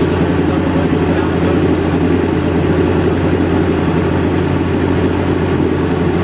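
A motorcycle engine idles loudly close by with a steady, throbbing rumble.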